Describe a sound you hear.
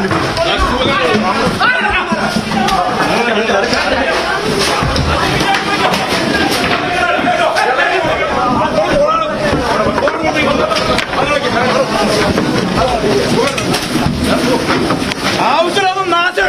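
A crowd of men shout and talk over one another nearby.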